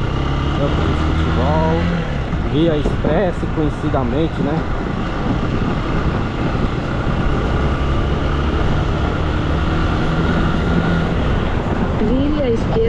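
A motorcycle engine hums steadily as it rides along.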